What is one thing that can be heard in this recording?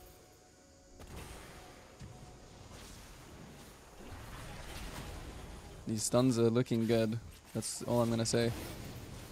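Magic spell effects whoosh and burst.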